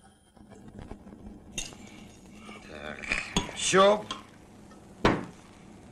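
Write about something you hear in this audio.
Liquid pours from a bottle into a glass.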